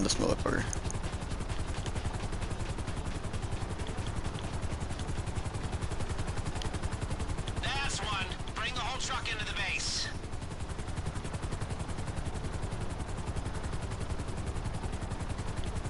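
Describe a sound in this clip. A helicopter's rotor chops and drones steadily.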